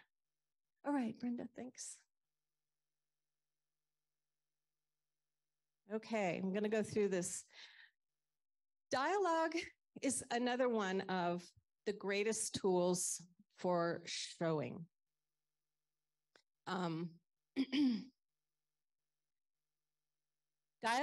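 A woman speaks calmly and steadily, heard through an online call microphone, with short pauses.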